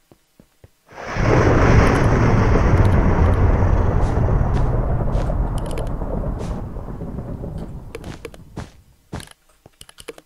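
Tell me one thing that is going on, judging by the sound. A loud rushing game sound effect plays, then slowly fades.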